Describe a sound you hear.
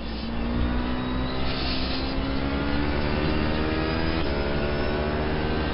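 A racing car engine roars steadily, its pitch slowly rising and shifting with gear changes.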